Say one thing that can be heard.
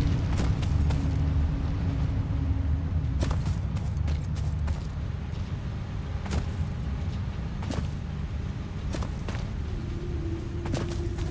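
Footsteps brush through grass.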